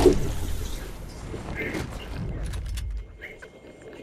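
Wind rushes loudly as a game character glides down through the air.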